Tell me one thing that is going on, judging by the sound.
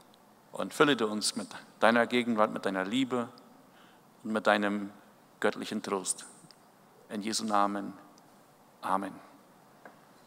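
A middle-aged man speaks calmly through a microphone in an echoing hall, with pauses.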